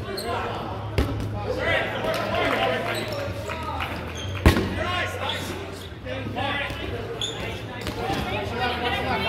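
Rubber balls bounce and smack on a wooden floor.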